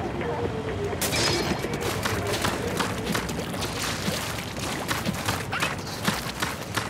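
Ink splatters wetly and repeatedly in a video game.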